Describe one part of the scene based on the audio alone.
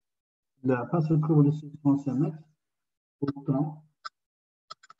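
A man speaks calmly through a microphone in an online call.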